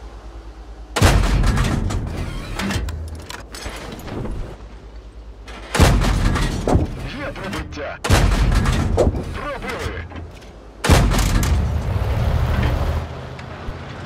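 Heavy cannon shots boom and echo.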